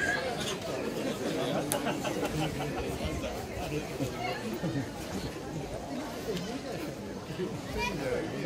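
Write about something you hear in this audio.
A crowd of men and women chatters and calls out loudly outdoors.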